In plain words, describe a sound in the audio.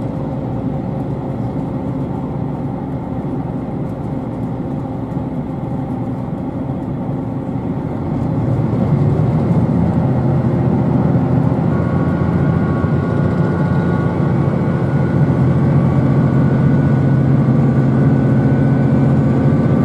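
A train rumbles steadily along the tracks, heard from inside a carriage, growing louder as it speeds up.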